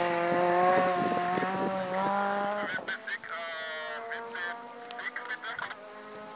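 A rally car engine roars loudly at high revs.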